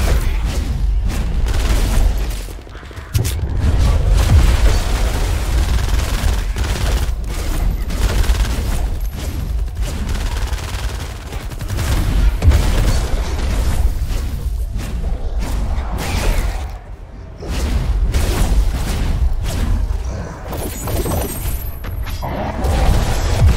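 A heavy melee weapon swings and strikes again and again.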